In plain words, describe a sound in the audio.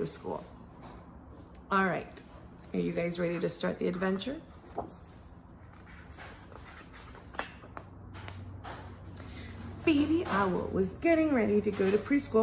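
A woman speaks and reads aloud with animation, close by.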